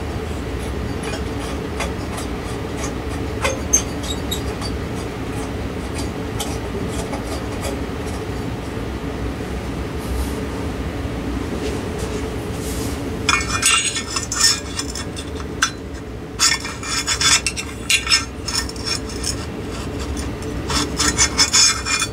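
A ceiling fan hums steadily as its blades spin.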